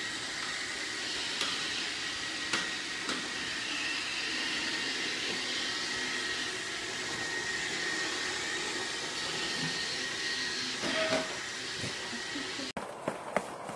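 A robot vacuum hums steadily.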